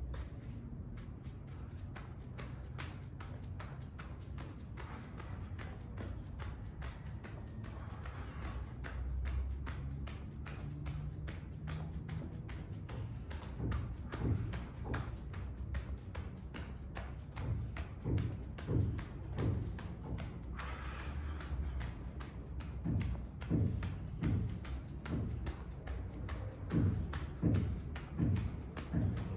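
A skipping rope slaps the ground in a quick, steady rhythm.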